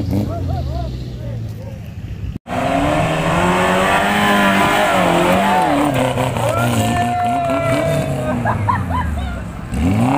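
Off-road vehicle engines rev and roar loudly.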